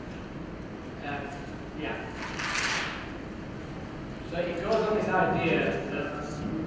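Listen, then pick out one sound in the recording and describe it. A middle-aged man answers calmly through a microphone.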